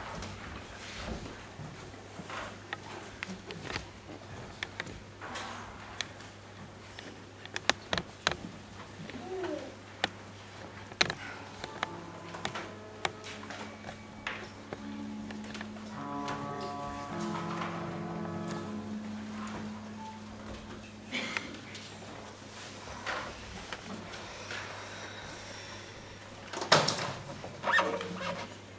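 Footsteps and shuffling sound as a group of people take their places in an echoing hall.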